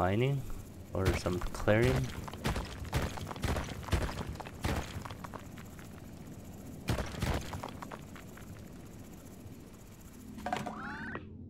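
Rock cracks and crumbles in short bursts as a small digging machine breaks through stone.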